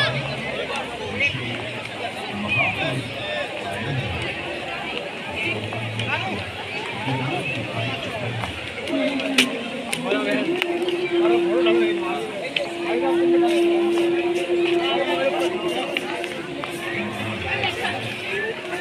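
A crowd of people chatters outdoors all around.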